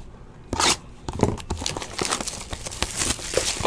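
A foil wrapper crinkles and tears as hands open it.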